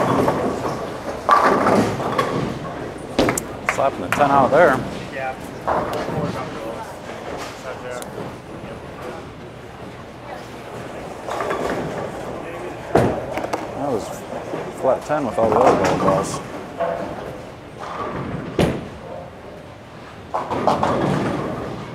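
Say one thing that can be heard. Bowling balls rumble down the lanes.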